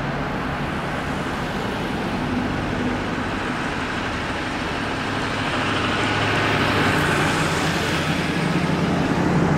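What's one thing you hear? A fire engine's diesel engine rumbles as it drives slowly past, close by.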